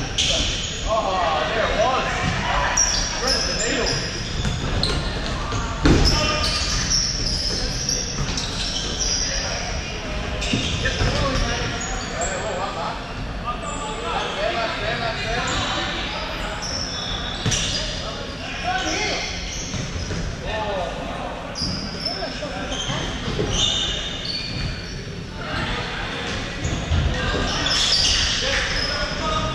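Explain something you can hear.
Young men shout and call out to each other from across an echoing hall.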